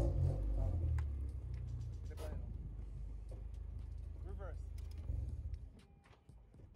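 A car engine idles with a low rumble, then shuts off.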